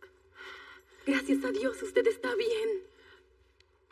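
A young woman speaks with emotion close by.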